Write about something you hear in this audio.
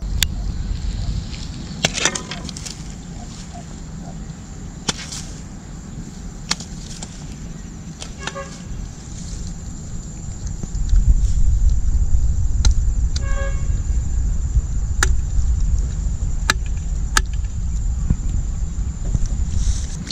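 A blade knocks and scrapes against a foam block.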